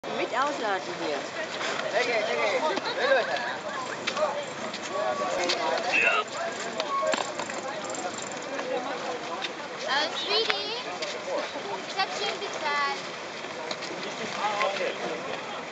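Several men and women talk and call out nearby, outdoors.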